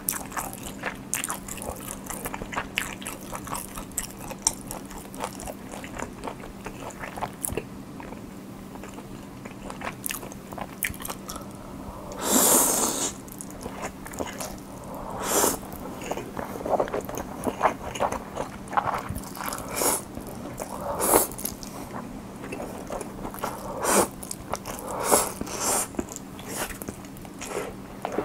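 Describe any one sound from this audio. A young man chews food wetly and close to a microphone.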